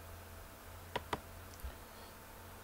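A short click sounds as a chess piece is placed.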